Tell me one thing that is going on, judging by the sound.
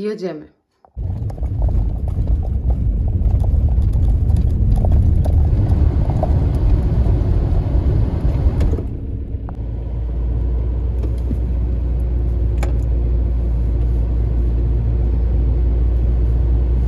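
A car engine rumbles steadily from inside a moving car.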